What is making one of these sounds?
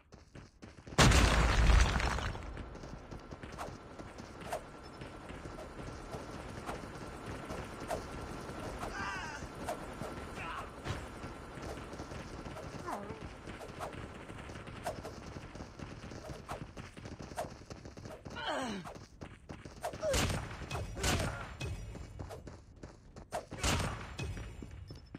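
Knife blows land with heavy thuds.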